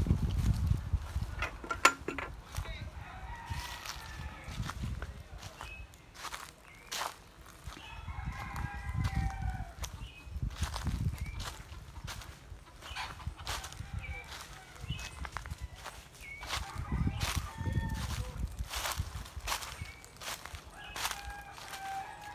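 Wind blows outdoors and rustles the leaves of trees.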